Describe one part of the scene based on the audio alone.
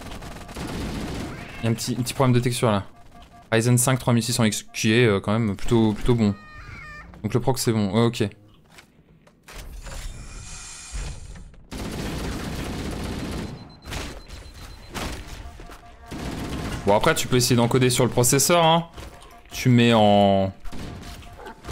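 Gunfire rattles in bursts.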